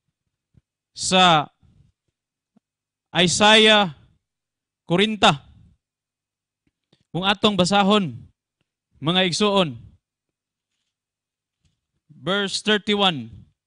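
A man speaks into a microphone in short, deliberate phrases with pauses between them.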